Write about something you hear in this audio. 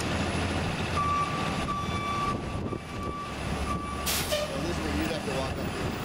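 A bus engine idles nearby.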